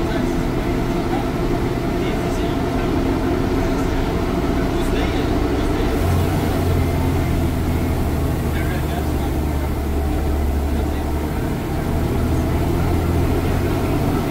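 A bus engine rumbles loudly and steadily.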